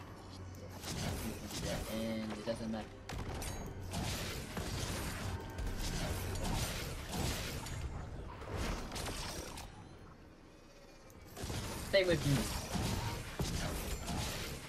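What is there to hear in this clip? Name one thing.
Magic blasts fire in rapid bursts.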